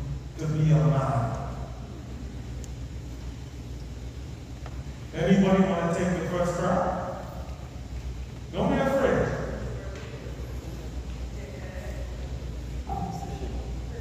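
An elderly man speaks with feeling through a microphone and loudspeakers in a large echoing hall.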